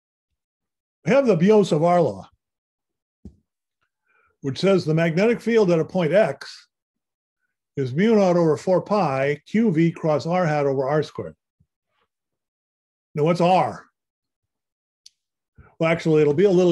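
A man explains calmly, heard through an online call, in short bursts with pauses.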